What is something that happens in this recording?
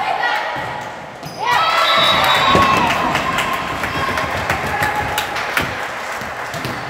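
Young women shout and call to each other in an echoing gym.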